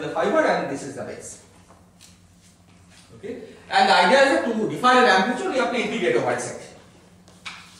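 A man lectures in a large echoing hall.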